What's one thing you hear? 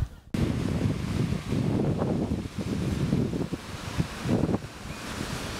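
Small waves wash softly onto the shore.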